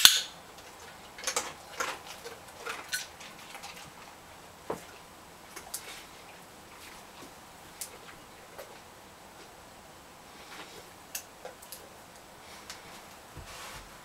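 A dog's claws tap on a mat.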